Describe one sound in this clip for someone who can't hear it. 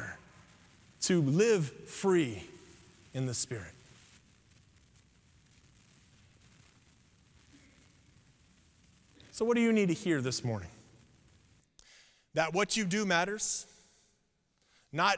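A man preaches through a microphone in an echoing hall, speaking slowly with long pauses.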